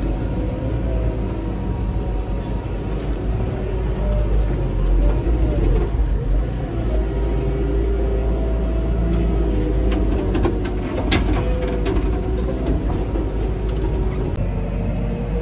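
A loader's diesel engine rumbles steadily from inside the cab.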